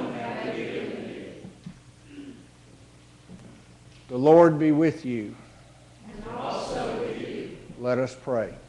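A group of people answer together in spoken unison.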